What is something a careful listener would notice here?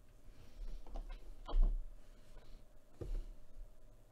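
A cardboard box is picked up and bumps against a table.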